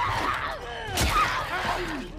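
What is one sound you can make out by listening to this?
A heavy blow thuds into a body.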